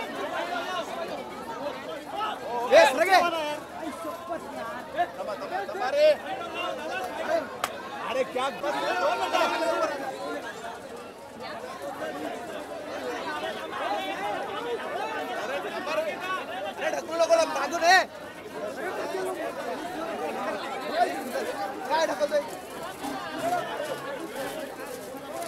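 A dense crowd of men and women chatters and shouts close by.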